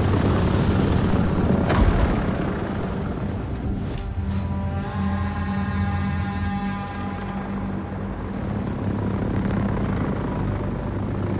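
Propeller plane engines drone steadily.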